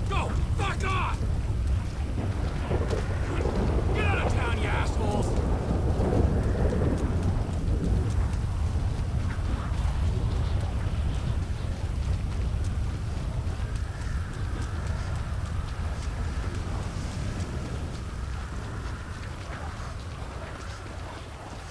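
A man's footsteps run over rough ground.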